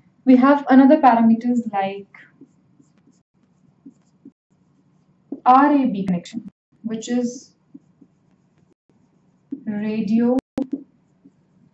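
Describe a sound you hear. A young woman speaks calmly in short phrases, as if explaining.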